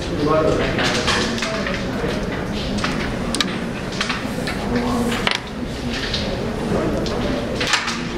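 Wooden game pieces click sharply as a striker is flicked across a board.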